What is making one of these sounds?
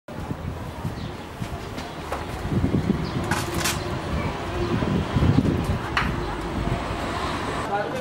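A machine whirs and clatters close by.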